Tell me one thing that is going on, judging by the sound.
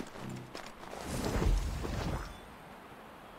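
Leaves and bushes rustle loudly as something pushes through them.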